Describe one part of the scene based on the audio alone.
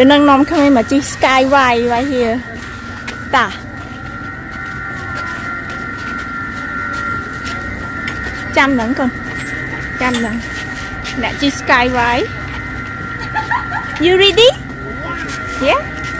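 A young girl talks and exclaims nearby.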